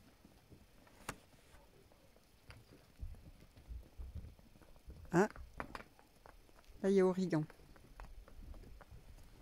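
Hooves clop on hard paving.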